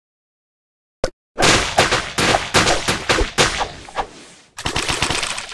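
Sharp slicing zaps crackle in quick bursts.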